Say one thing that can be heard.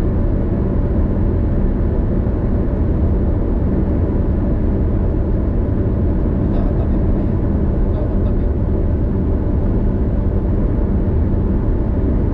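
Tyres roar steadily on the road at speed.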